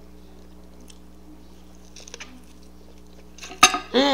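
An older woman chews food with soft mouth noises.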